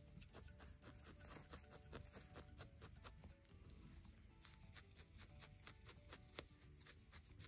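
A felting needle jabs into wool with quick, soft, rhythmic pokes.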